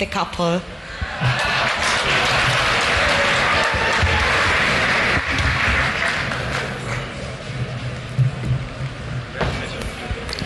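A large crowd cheers and applauds loudly.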